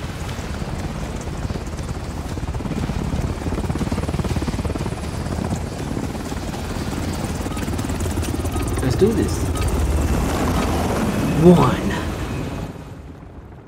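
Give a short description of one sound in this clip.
A helicopter's rotors roar close by.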